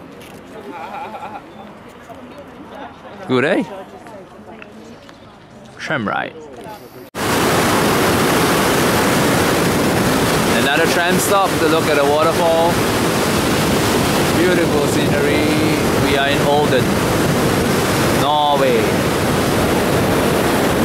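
Elderly men and women chat nearby outdoors.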